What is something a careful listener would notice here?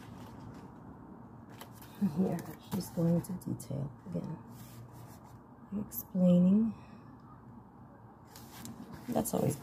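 Book pages rustle as they turn.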